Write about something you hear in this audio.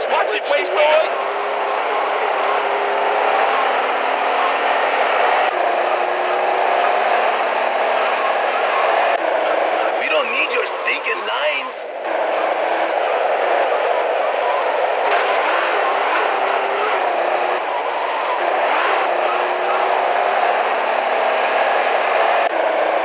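A car engine revs steadily.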